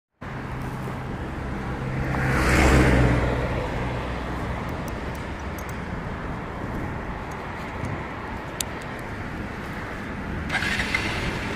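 A motorcycle engine idles with a low steady rumble.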